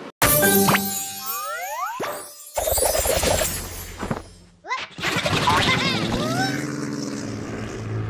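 Cheerful game music plays with chiming bonus jingles.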